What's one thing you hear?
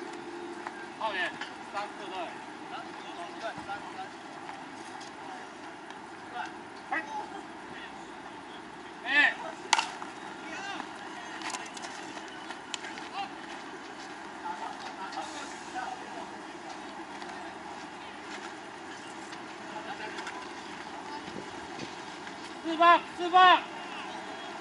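Men call out loudly across an open field.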